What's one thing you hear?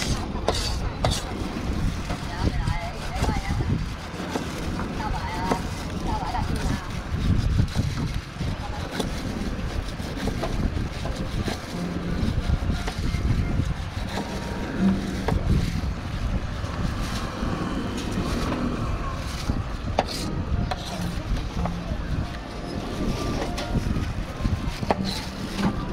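A knife blade taps and knocks on a plastic cutting board.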